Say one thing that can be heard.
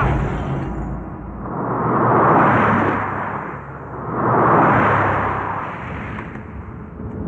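A car speeds past with a rushing whoosh.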